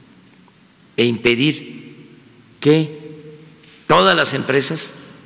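An elderly man speaks calmly into a microphone, in short bursts.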